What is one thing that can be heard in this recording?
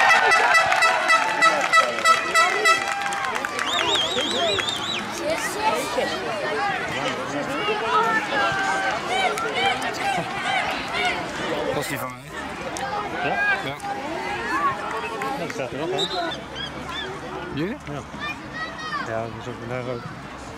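Children in a crowd shout and cheer outdoors.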